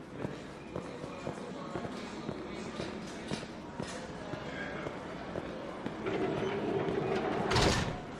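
Footsteps tap along a hard floor.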